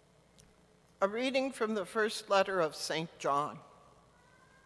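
An elderly woman speaks calmly into a microphone in a reverberant room.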